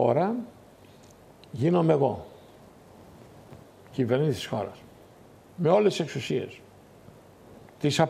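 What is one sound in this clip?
An older man speaks in short, emphatic bursts through a microphone.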